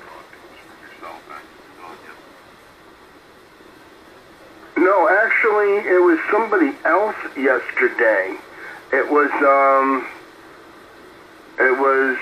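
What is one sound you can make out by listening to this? Faint radio static hisses in the background.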